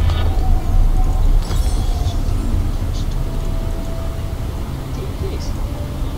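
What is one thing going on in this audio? A soft chime sounds as items are bought in a video game menu.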